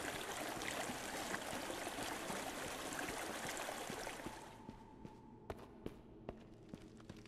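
Footsteps thud on a stone floor in an echoing hall.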